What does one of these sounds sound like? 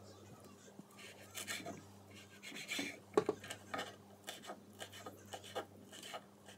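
A knife taps and scrapes on a wooden board.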